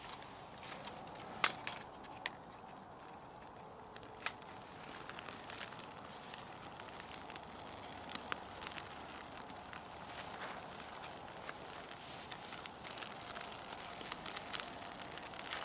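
A small wood fire crackles and pops.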